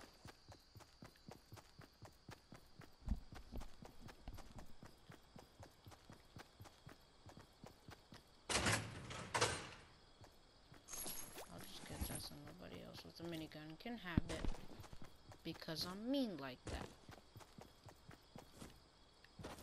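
Footsteps patter quickly over grass.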